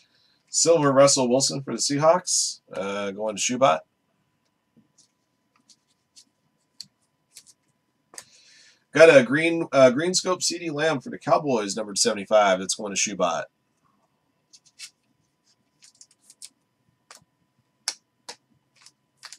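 Trading cards rustle and slide between fingers.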